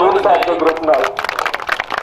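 A group of men clap their hands.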